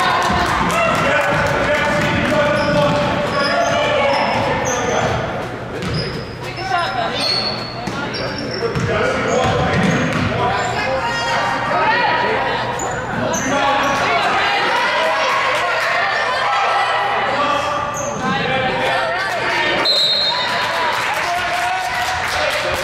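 Spectators and players shout and call out with animation.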